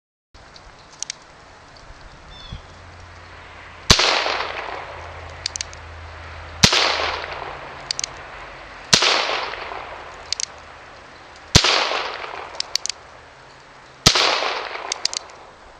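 A revolver's hammer clicks as it is cocked.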